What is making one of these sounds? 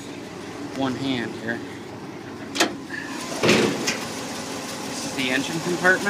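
A metal car hood clunks as it is lifted open.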